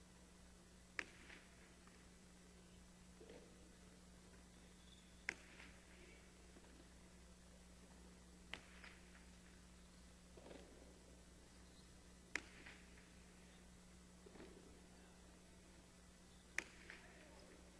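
A ball smacks hard against a wall in a large echoing court.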